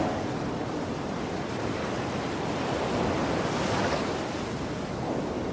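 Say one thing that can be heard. Ocean water washes steadily against a ship's hull.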